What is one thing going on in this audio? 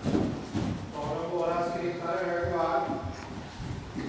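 A horse whinnies loudly.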